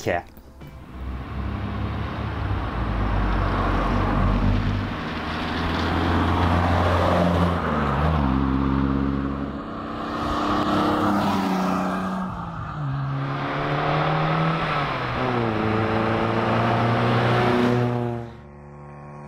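Car engines rev and roar past one after another, rising and falling in pitch.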